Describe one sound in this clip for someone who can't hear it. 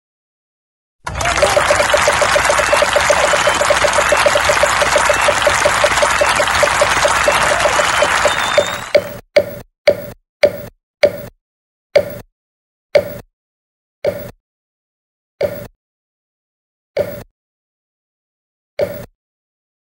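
A game show wheel ticks rapidly as it spins, then the ticks slow and stop.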